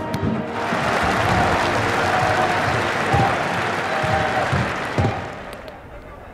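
A large crowd roars and chants in a stadium.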